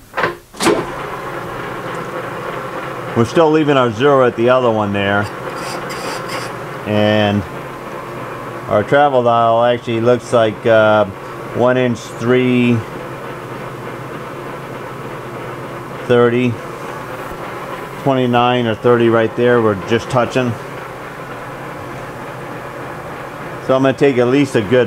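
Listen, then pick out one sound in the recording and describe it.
A lathe motor hums steadily as the chuck spins.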